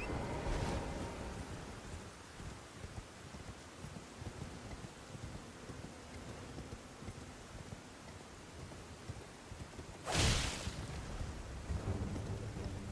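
Hooves gallop steadily on stone.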